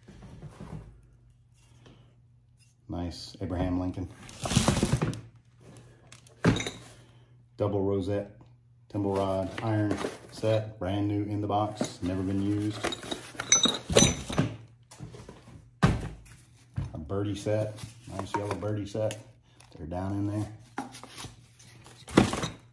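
Objects knock and clatter as they are handled.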